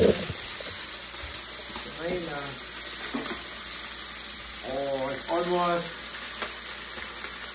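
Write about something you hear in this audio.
Metal tongs scrape against a pan.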